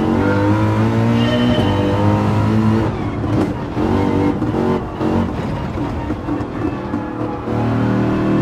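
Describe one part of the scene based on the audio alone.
A racing car engine roars at high revs, dropping in pitch as it shifts down.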